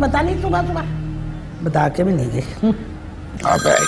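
A middle-aged woman speaks with feeling.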